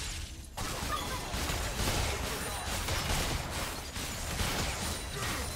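Magic spells blast and crackle in a busy game battle.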